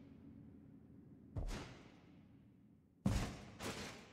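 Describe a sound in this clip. Metal armour clanks as a knight walks in a large echoing hall.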